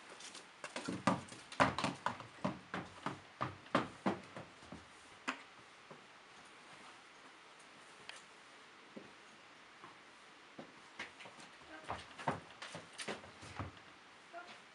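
Horse hooves thud and knock on a trailer ramp.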